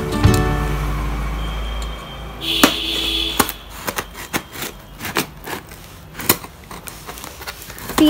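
A box cutter slices through packing tape with sharp scratching clicks.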